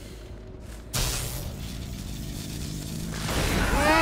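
Electricity crackles and buzzes, growing louder.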